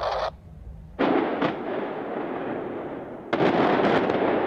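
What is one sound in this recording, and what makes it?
Explosive charges go off with loud booms.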